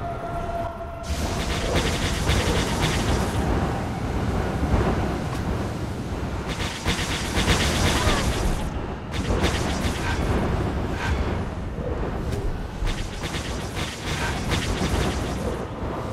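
Explosions boom and crackle over and over.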